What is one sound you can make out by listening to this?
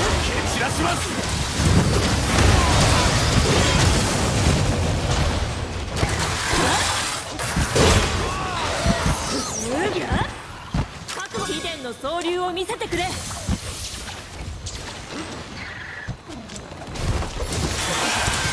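Blades slash and clang against a monster.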